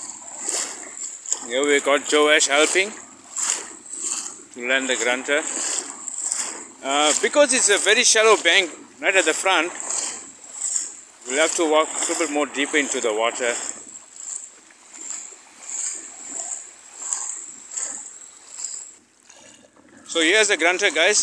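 Shallow water laps gently at the shore.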